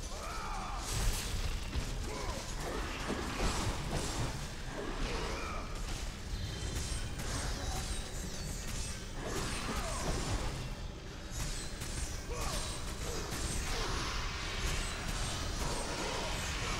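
Blades strike creatures with heavy, wet thuds.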